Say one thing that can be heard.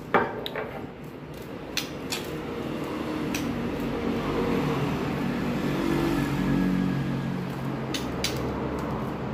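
A small bird hops about a cage with light taps.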